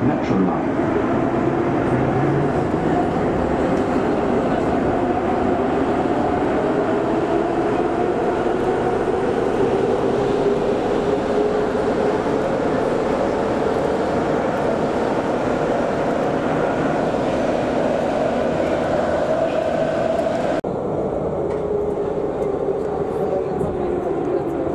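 A subway train rumbles loudly along the rails.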